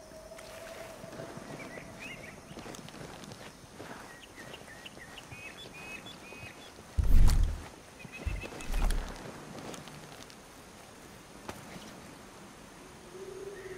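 Footsteps crunch softly on loose dirt.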